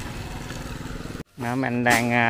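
A motorbike engine hums as it rides past.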